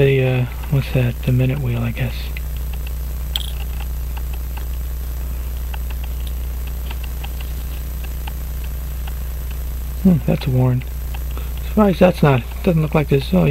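Metal tweezers tick faintly against small metal watch parts.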